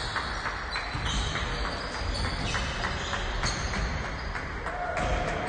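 Basketballs bounce on a hardwood floor in a large echoing hall.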